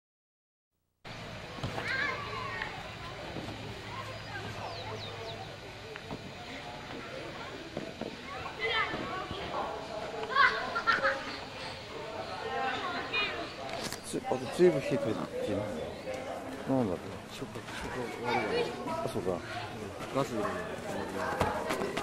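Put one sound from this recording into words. Children shout and call out outdoors.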